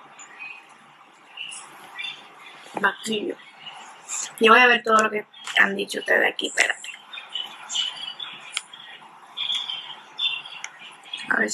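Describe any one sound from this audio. A young woman talks casually and close to a phone microphone.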